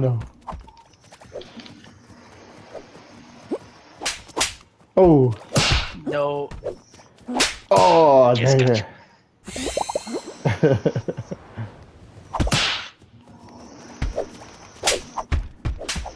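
Playful cartoon game sound effects pop and thud.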